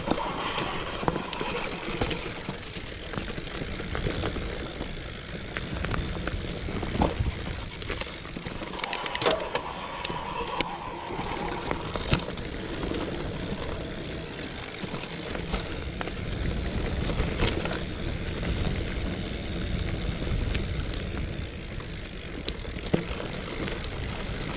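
A bicycle rattles and clunks over bumps and roots.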